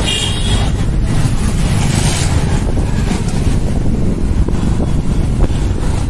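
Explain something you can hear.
Motorbike engines rumble past on a street.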